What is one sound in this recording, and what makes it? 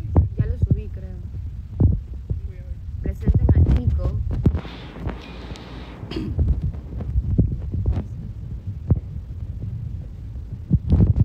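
A young woman talks casually and close to a phone microphone.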